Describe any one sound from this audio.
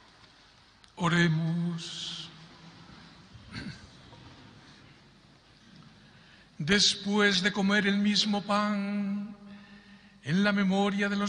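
A man chants through a microphone in a large echoing hall.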